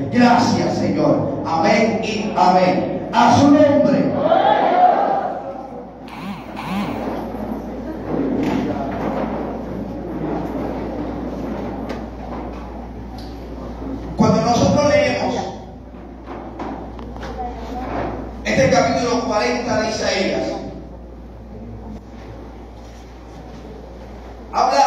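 A man preaches loudly over a loudspeaker in an echoing hall.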